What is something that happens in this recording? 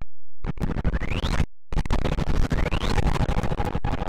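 A magic spell zaps with a bright, rising whoosh.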